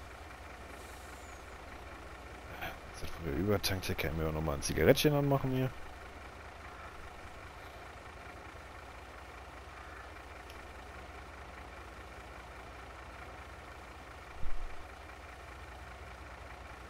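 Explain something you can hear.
A truck engine idles with a low, steady hum.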